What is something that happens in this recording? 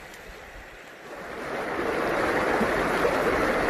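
A river rushes loudly over rocks.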